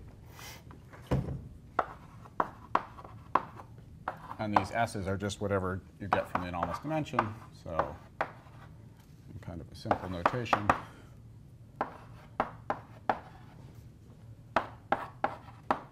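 Chalk taps and clicks sharply on a blackboard.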